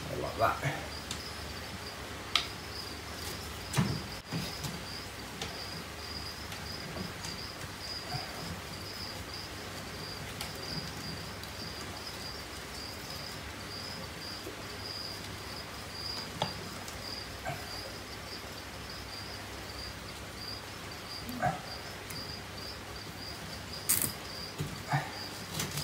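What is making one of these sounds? Wooden branches knock and scrape inside a glass terrarium.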